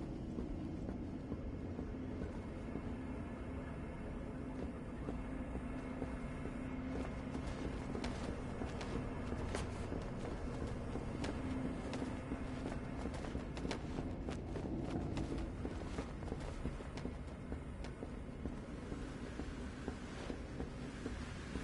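Footsteps clank on a metal grate.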